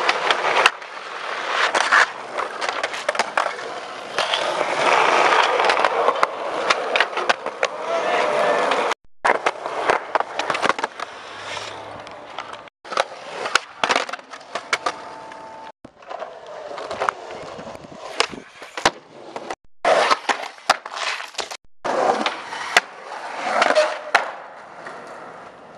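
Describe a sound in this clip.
Skateboard wheels roll over concrete with a rough grinding rumble.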